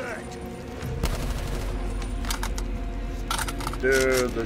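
Gunshots crack in quick bursts.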